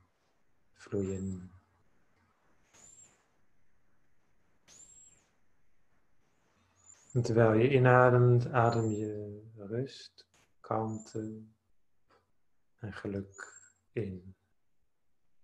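A young man speaks slowly and calmly through a microphone, pausing between phrases.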